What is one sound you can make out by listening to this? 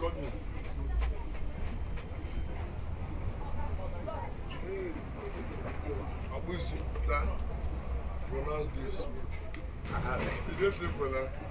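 A young man laughs cheerfully nearby.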